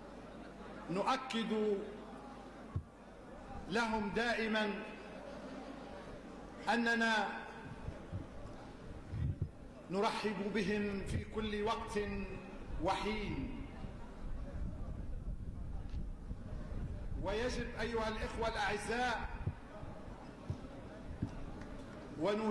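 A middle-aged man speaks loudly into a microphone, amplified outdoors, in short forceful phrases.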